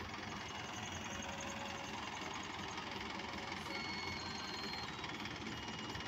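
A forklift engine runs.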